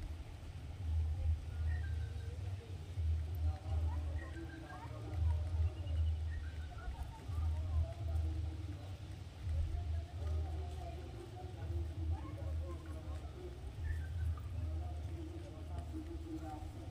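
Pigeons coo in low, throaty bursts close by.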